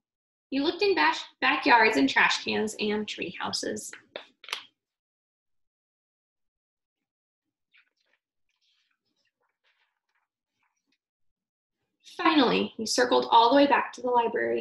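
A young woman reads aloud close by, with expression.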